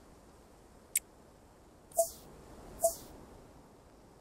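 Short electronic interface sounds chime as a game menu closes and opens.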